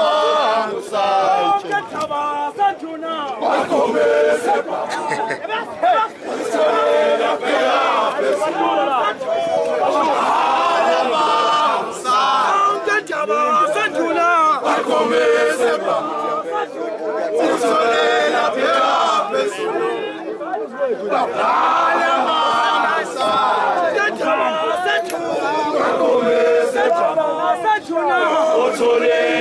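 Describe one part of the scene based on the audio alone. A crowd of men sings and chants loudly together outdoors.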